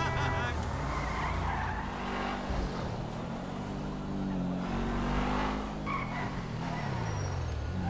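A car engine revs and roars as the car drives along.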